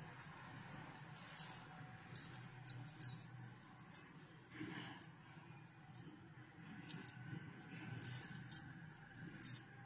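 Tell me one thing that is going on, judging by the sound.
Thin fabric rustles softly as a hand spreads it out.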